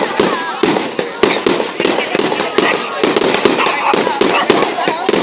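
Fireworks whistle and fizz as they shoot up.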